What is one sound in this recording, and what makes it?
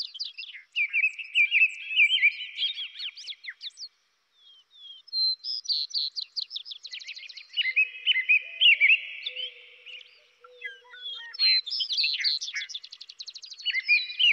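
Songbirds sing and chirp in bright, quick trills.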